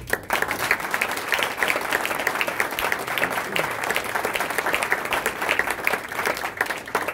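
A crowd applauds steadily in a room close by.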